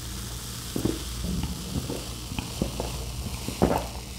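A young woman gulps a drink close by.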